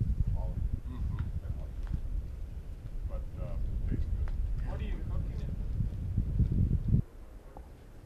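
Adult men talk calmly nearby.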